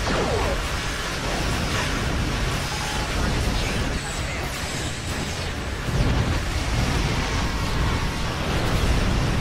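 Laser weapons fire in rapid bursts with a dense electronic roar.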